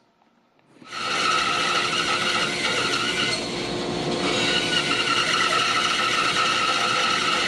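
A band saw hums and whirs as it cuts wood.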